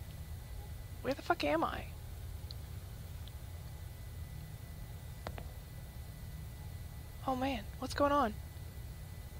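A man speaks in short, quiet phrases.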